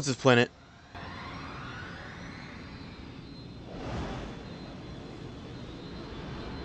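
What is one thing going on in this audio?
A starfighter's engines roar in flight.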